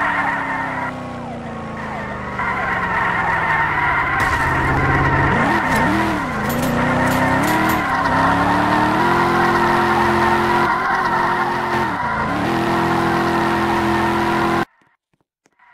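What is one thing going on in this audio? A car engine roars and revs, then idles.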